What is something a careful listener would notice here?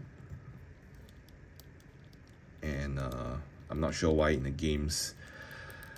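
Plastic joints of a small toy figure click softly as they are bent.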